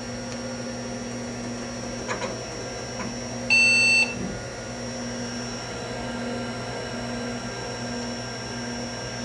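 A vintage portable computer's cooling fan hums.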